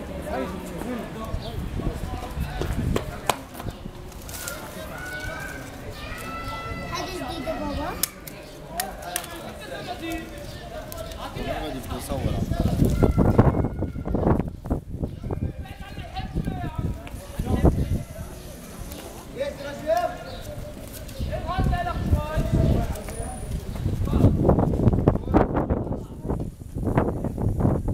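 Palm leaves rustle and crackle as a man weaves them by hand.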